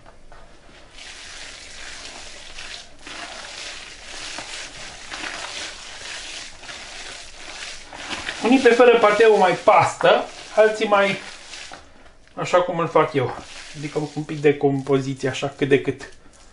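Hands squelch and squish through soft ground meat.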